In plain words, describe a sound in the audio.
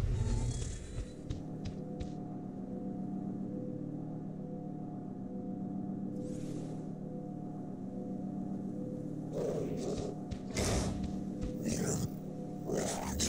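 A glowing energy crystal hums steadily and pulses.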